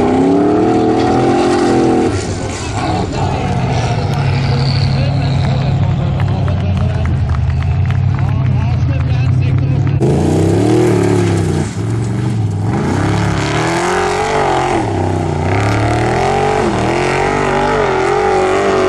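Gravel and dirt spray and crackle under spinning tyres.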